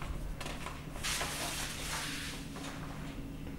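Large sheets of paper rustle as they are turned.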